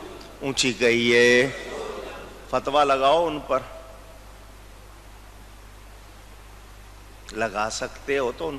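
An elderly man speaks with animation into a microphone, pausing between phrases.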